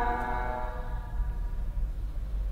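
A man chants a long, drawn-out note through a microphone.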